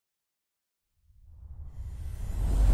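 A deep rumbling whoosh swells and grows louder.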